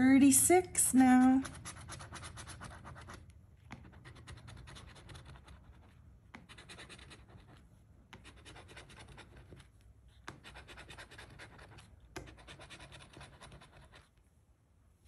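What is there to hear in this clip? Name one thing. A coin scrapes across a scratch-off ticket in quick, rasping bursts.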